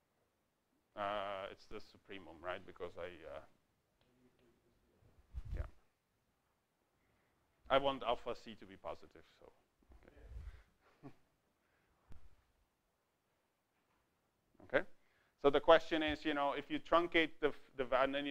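A man lectures calmly, heard through a microphone in a large room, with pauses.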